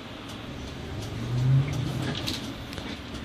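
A bus engine revs up loudly.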